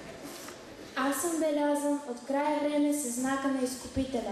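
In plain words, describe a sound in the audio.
A teenage boy reads aloud into a microphone.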